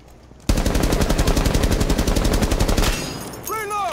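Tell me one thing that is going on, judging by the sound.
Automatic rifle fire rattles in a rapid, loud burst.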